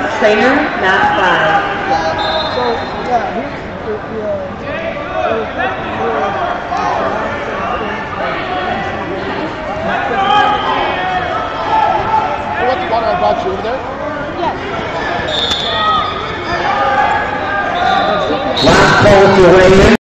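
A large crowd chatters, echoing in a big hall.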